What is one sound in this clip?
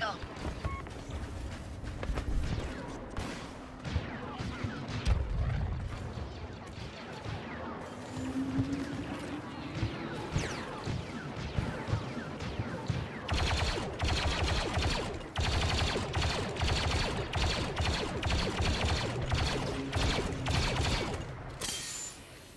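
Blaster gunfire crackles and zaps in quick bursts.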